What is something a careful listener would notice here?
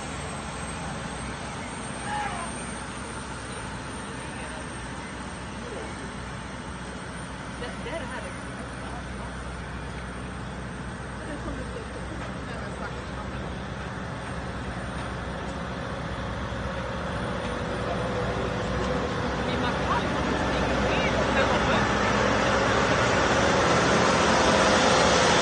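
A heavy transport vehicle rumbles slowly past, its many tyres rolling on the road.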